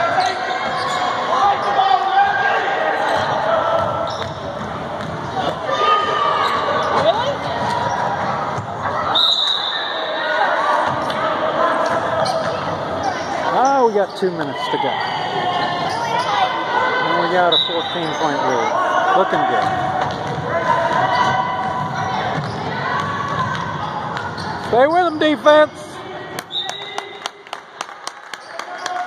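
Spectators chatter and call out in an echoing gymnasium.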